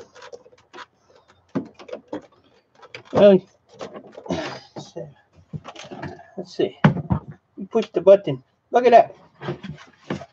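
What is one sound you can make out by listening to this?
A plastic lid clatters as it is lifted off a bin.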